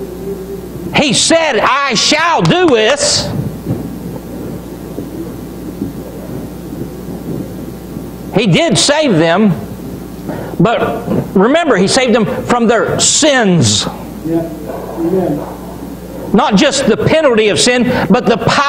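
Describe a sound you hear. A middle-aged man preaches with animation in a room with some echo, pausing between phrases.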